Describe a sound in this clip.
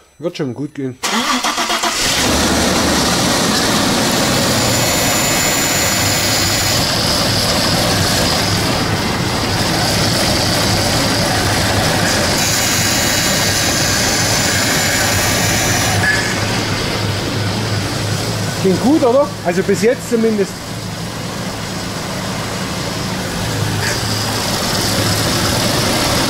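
A car engine idles steadily with a low hum.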